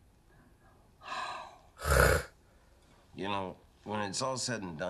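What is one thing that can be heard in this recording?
A young man speaks calmly and hesitantly, close to a microphone.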